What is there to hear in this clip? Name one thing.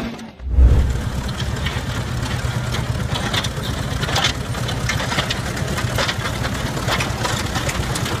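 Steel tracks clank and rattle as a tractor crawls forward.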